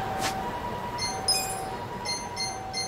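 Soft electronic menu chimes beep several times.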